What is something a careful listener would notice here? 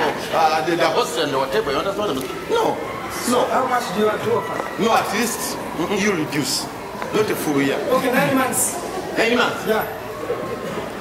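A man speaks loudly and with animation in an echoing hall.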